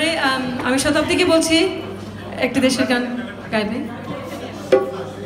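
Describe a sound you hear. A woman sings into a microphone through loudspeakers in an echoing hall.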